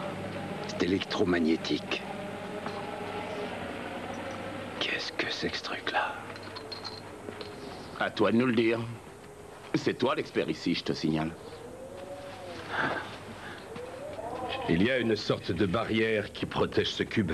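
A middle-aged man speaks calmly and earnestly, close by.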